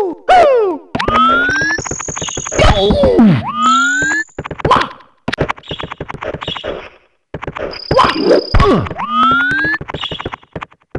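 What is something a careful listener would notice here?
Game jump sounds chirp with rising tones.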